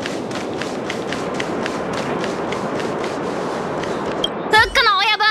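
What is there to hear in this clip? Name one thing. Footsteps run quickly and steadily on hard ground.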